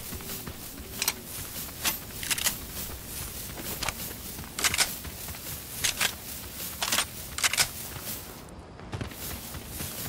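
Quick footsteps patter on the ground.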